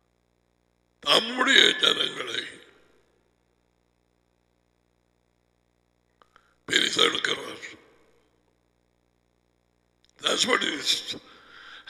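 A middle-aged man speaks emphatically in short bursts through a headset microphone.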